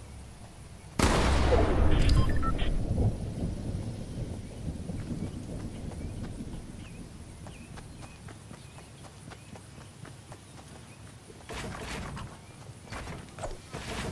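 Footsteps run on grass.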